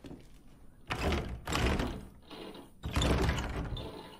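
A door handle rattles and clunks as it is tried.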